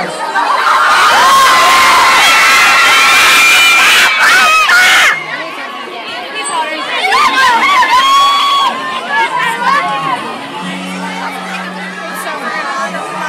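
A large crowd of young girls screams loudly and excitedly, close by, in an echoing hall.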